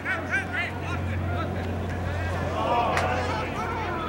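Spectators cheer from the sideline.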